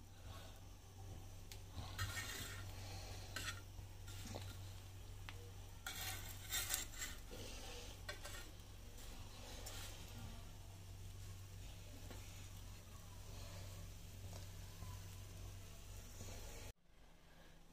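Bread sizzles softly in hot oil in a pan.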